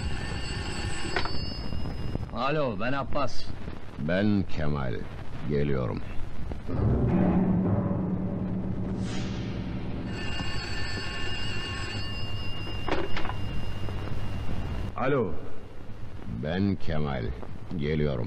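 A man speaks into a telephone.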